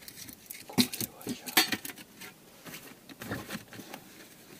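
A metal tray clatters as it is handled.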